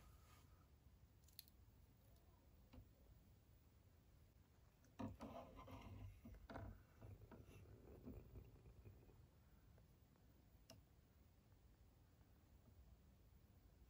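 Water sloshes as a doll is dipped into a cup.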